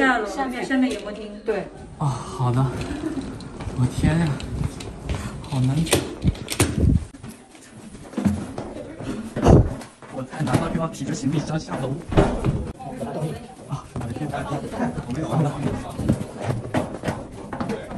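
Footsteps clang on metal stairs.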